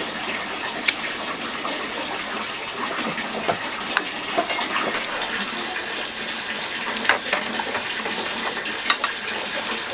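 Chopsticks click against a ceramic bowl.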